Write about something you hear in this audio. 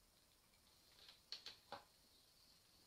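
A lighter clicks several times.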